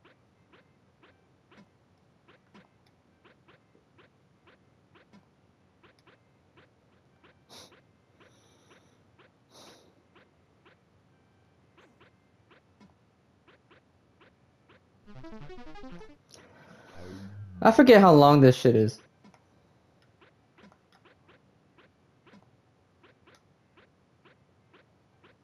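Soft electronic clicks tick steadily as a game character runs.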